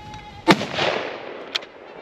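A rifle shot cracks loudly outdoors.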